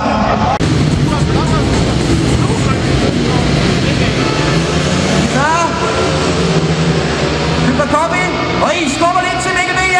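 Speedway motorcycle engines roar loudly as the bikes race around the track.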